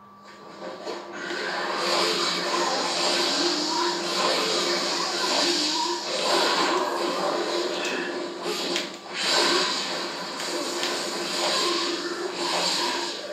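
A video game battle plays loudly.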